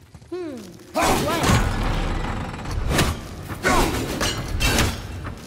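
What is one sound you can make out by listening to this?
A heavy blade swings and strikes hard.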